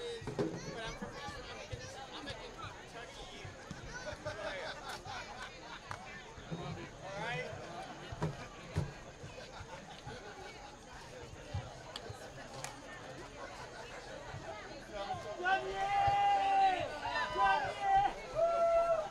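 A crowd of men and women chatters outdoors.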